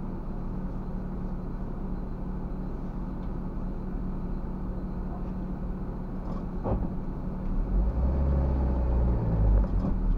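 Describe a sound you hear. A car engine idles and hums steadily, heard from inside the car.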